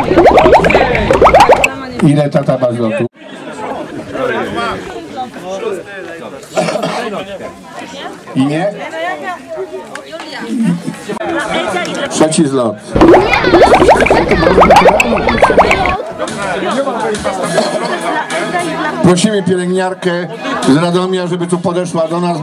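A crowd of adults and children talks and laughs outdoors.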